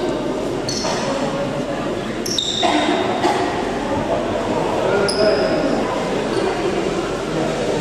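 Young women and men talk and call out in a large echoing hall.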